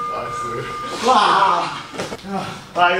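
A young man laughs loudly.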